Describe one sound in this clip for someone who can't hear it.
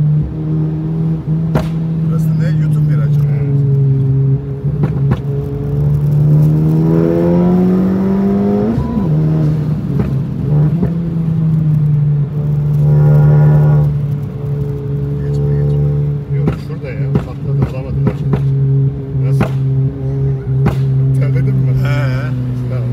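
A turbocharged four-cylinder hatchback engine drones from inside the cabin.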